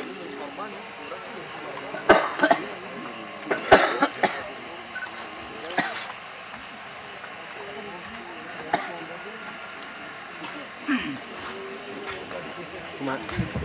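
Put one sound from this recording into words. Several men talk quietly nearby.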